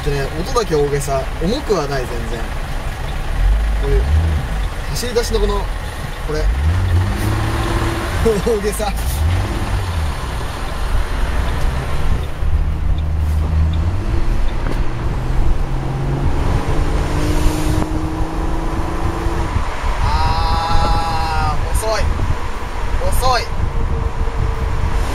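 A car engine hums and rises as it speeds up.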